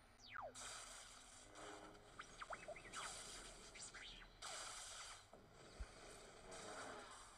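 Lightsabers hum and swoosh in bursts.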